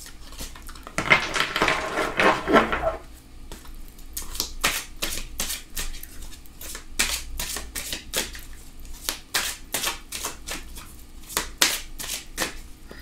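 Cards shuffle with quick riffling snaps.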